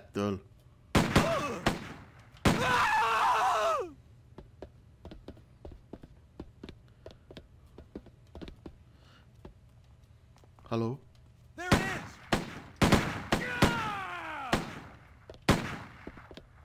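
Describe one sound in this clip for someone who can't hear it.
Gunshots bang loudly, with ringing echoes.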